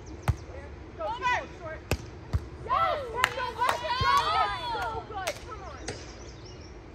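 Young women shout and call out to each other.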